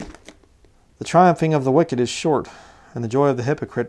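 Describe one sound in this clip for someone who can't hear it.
A man reads aloud calmly, close to a microphone.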